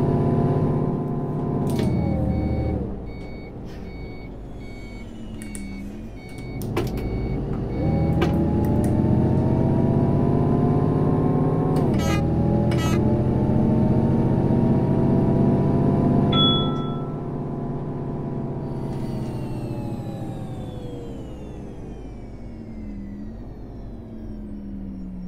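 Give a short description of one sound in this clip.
A bus engine hums, rising and falling in pitch as it speeds up and changes gear.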